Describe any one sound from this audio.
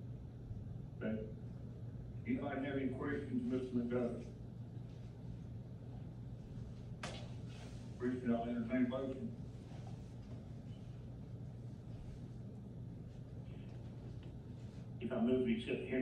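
A man speaks in short phrases at a distance.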